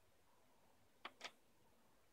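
Buttons on a record player click.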